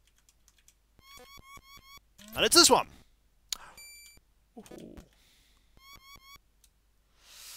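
Short electronic game chimes beep.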